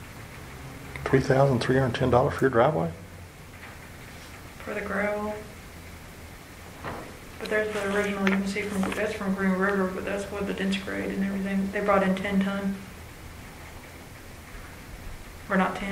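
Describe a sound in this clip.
Men talk calmly in turns, close by.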